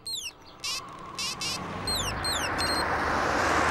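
Phone keys beep as buttons are pressed.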